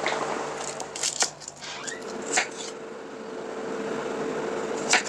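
A knife chops through a shallot onto a wooden board.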